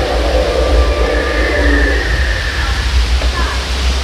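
A waterfall splashes and rushes steadily.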